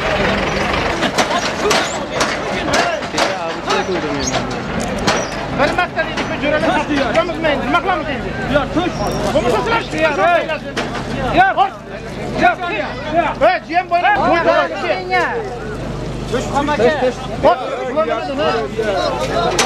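Men nearby talk loudly with animation.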